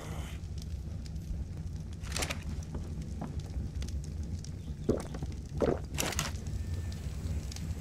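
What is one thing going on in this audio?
Short game menu clicks sound as an inventory opens and closes.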